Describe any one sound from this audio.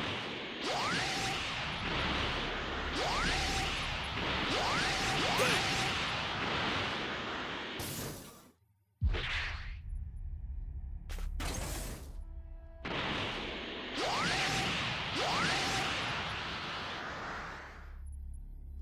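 A loud rushing whoosh roars past in bursts.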